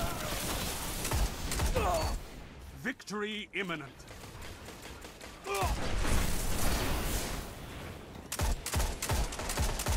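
Sniper rifle shots crack in a video game.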